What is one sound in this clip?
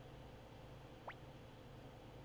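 A short rising electronic chime sounds once.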